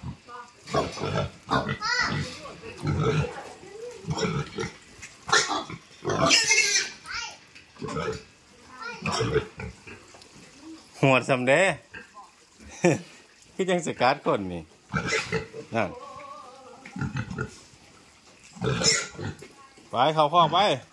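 A pig grunts.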